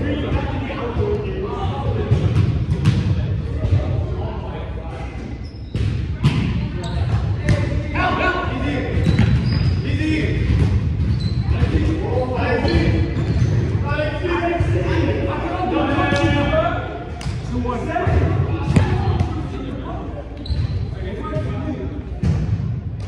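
Young men talk and call out across a large echoing hall.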